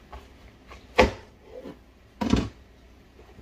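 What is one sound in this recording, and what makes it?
A knife thuds down through a watermelon onto a cutting board.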